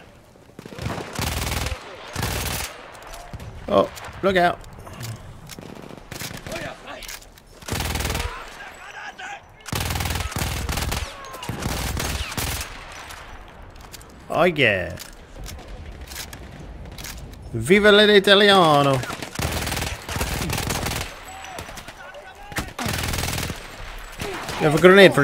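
Gunshots bang loudly, again and again.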